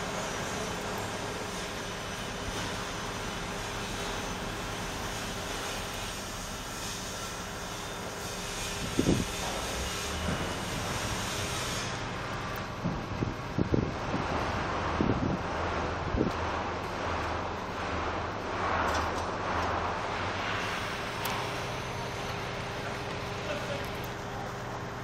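A machine engine hums steadily nearby.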